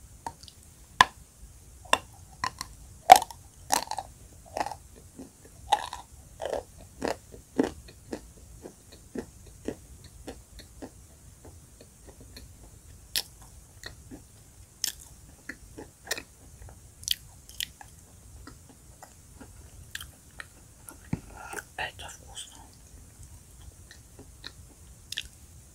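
A woman chews chalk with dry crunching close to a microphone.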